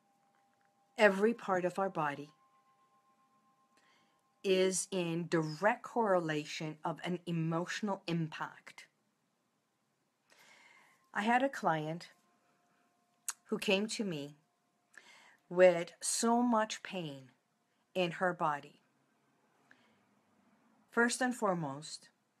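A middle-aged woman speaks calmly and closely into a phone microphone, in short bursts with pauses.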